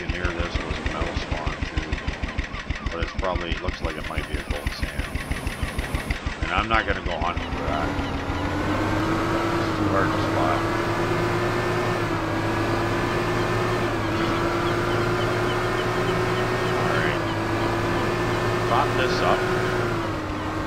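Water splashes against a small boat's hull.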